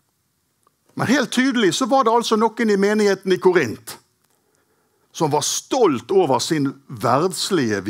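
A middle-aged man speaks with animation into a microphone, heard close.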